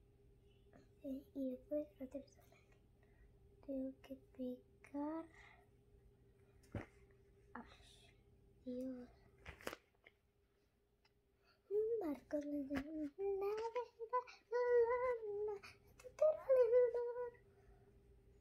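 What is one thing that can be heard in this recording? A young girl sings softly close by, in short phrases.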